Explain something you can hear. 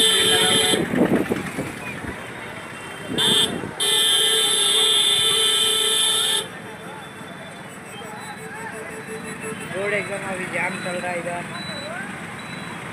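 Engines of passing vehicles rumble along a busy street.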